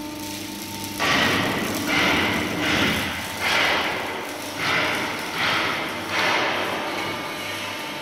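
A metal press hisses in short repeated bursts.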